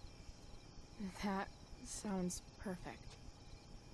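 A second young woman answers calmly, close by.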